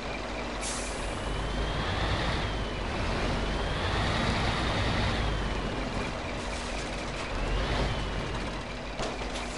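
A truck engine whines, rising and falling as it strains.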